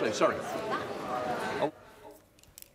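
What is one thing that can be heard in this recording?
A crowd of men and women murmurs and chatters in a large hall.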